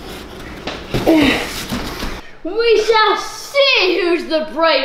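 A young boy shouts excitedly close by.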